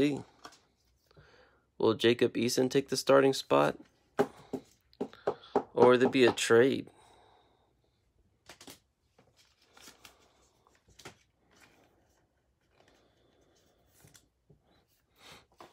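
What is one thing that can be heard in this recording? Plastic card sleeves rustle and slide in the hands.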